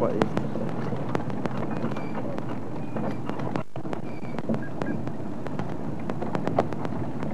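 A vehicle engine rumbles steadily while driving over a rough dirt track.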